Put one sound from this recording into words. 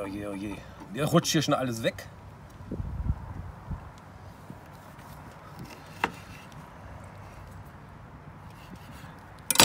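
A knife cuts through limes and taps on a wooden board.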